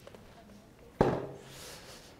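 A wooden stool knocks down onto a floor.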